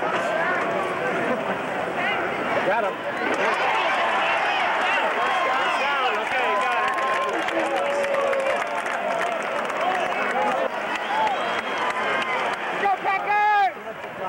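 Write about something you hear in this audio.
A large crowd cheers and shouts in a big open stadium.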